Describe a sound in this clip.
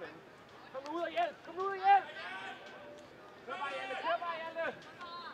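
A man close by shouts loudly.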